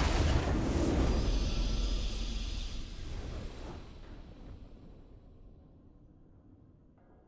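A triumphant game fanfare swells and slowly fades away.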